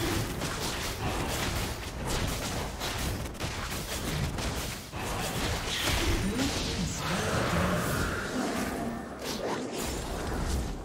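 Magical spell effects whoosh and burst in quick succession.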